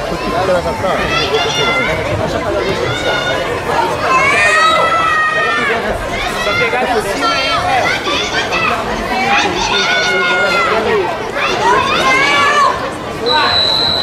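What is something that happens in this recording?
Men shout loudly from close by.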